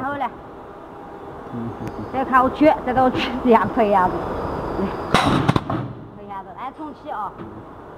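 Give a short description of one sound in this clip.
Metal cans knock against a machine.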